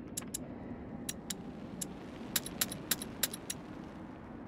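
Short soft clicks tick several times in quick succession.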